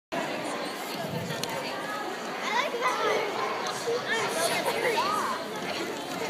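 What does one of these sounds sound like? Young children chatter and call out in a large echoing hall.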